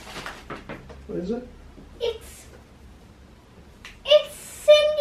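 A young girl speaks up excitedly close by.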